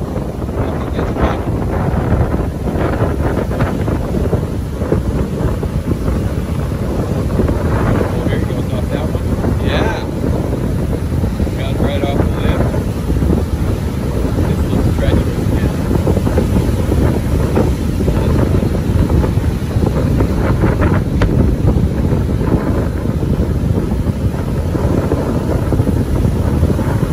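Strong wind blows across the microphone outdoors.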